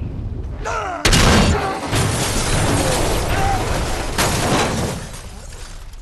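A train carriage crashes and scrapes loudly over snow and rock.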